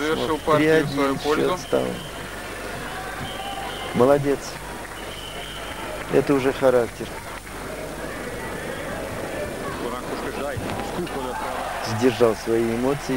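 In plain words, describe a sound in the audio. A large crowd murmurs softly in an echoing hall.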